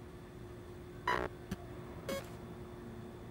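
Electronic menu chimes and clicks sound as options are selected.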